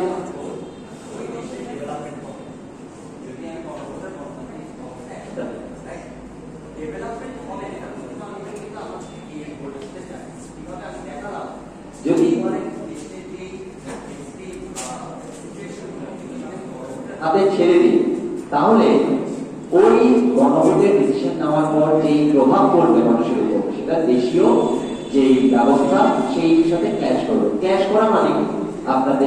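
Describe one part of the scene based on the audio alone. A young man speaks with animation through a microphone and loudspeakers in an echoing hall.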